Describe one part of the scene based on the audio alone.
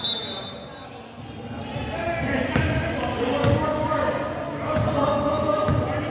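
A basketball is dribbled on a hardwood court.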